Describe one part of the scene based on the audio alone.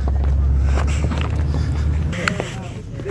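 Wind rumbles against the microphone.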